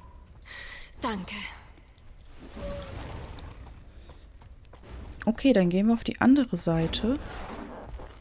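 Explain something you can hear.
A young woman speaks animatedly into a microphone.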